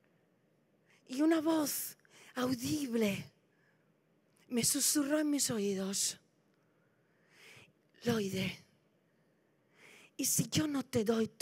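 A middle-aged woman speaks with animation through a microphone, in pauses.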